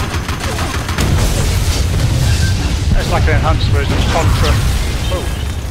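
A huge explosion booms and rumbles close by.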